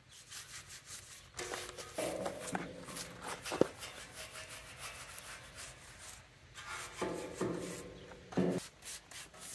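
A stiff brush scrubs against metal.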